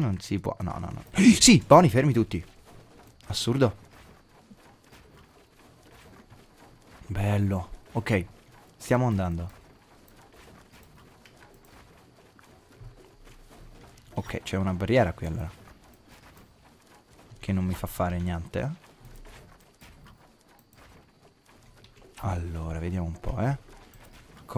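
A young man talks calmly and close to a microphone, in short bursts.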